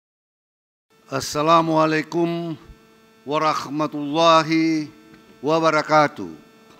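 A man speaks formally into a microphone over loudspeakers.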